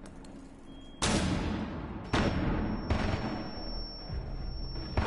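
Gunshots ring out in short, sharp bursts.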